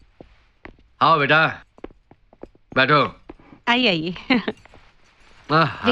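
A man speaks loudly and with emotion nearby.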